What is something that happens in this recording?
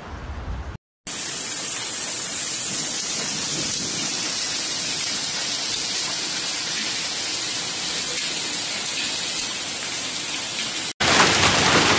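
Hail pours down steadily outdoors with a loud hiss.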